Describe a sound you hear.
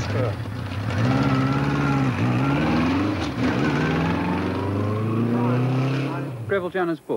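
A motorcycle engine revs as the motorcycle pulls away.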